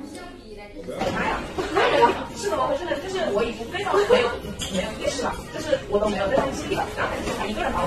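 A young woman talks calmly close by.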